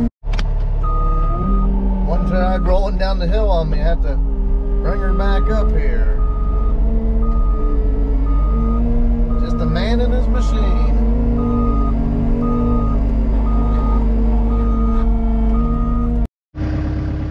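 A tracked loader's diesel engine roars loudly from inside the cab.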